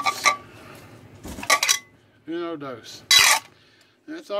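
Ceramic plates clink against each other.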